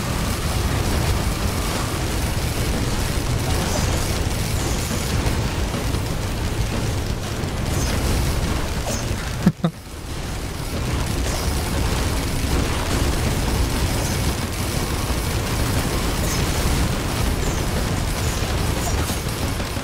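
Video game weapons fire and explosions crackle in rapid bursts.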